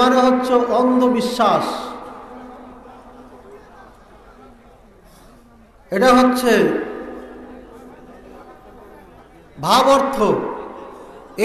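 A man preaches loudly into a microphone in short, chanting bursts, echoing over loudspeakers.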